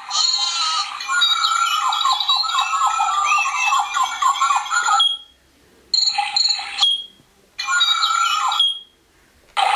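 Recorded birdsong plays from a small speaker, stopping and starting in short bursts.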